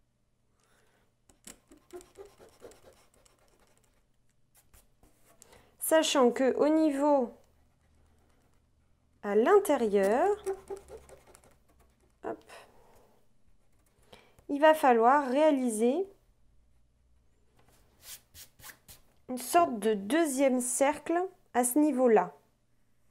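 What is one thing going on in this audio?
A pencil scratches lightly on paper.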